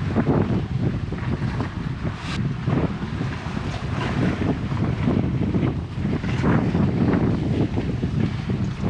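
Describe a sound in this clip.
Wind buffets loudly against a nearby microphone outdoors.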